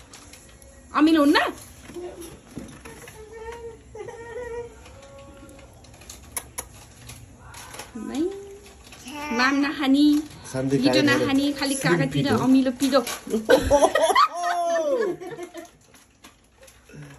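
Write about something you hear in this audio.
A toddler babbles and talks close by.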